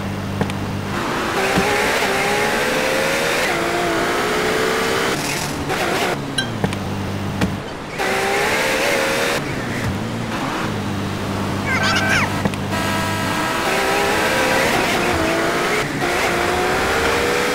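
A car engine revs up repeatedly, rising in pitch as it speeds along.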